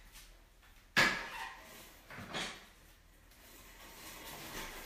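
Something heavy clunks as it is moved across the floor.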